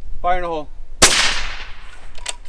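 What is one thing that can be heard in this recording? A rifle fires a single loud shot that echoes briefly.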